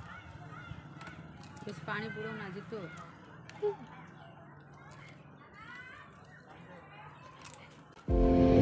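Crisp puffed shells crunch as teenage boys bite and chew.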